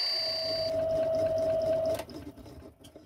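A lathe motor hums steadily, then switches off and winds down.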